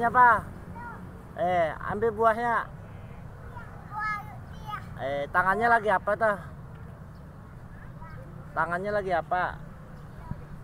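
A young child speaks and calls out in a high voice close by.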